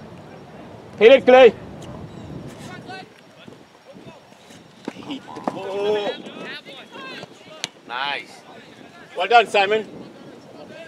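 Young players shout loudly to each other outdoors across an open field.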